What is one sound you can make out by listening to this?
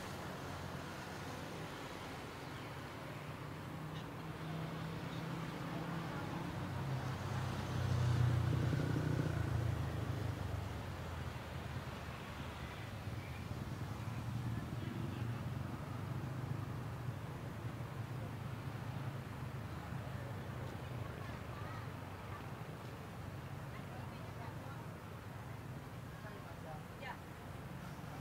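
Traffic hums steadily along a nearby street outdoors.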